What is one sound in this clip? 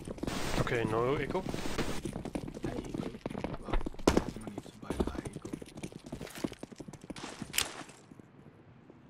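Footsteps tap quickly on hard ground.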